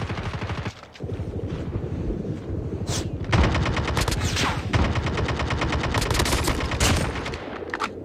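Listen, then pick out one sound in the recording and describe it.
Rapid automatic gunfire rattles in fast bursts.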